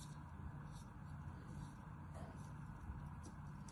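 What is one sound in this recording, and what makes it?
A knife scrapes and cuts through soft sand.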